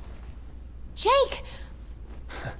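A young woman shouts in alarm.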